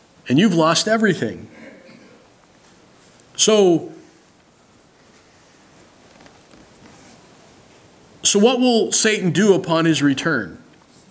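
A middle-aged man speaks calmly into a microphone, pausing between phrases.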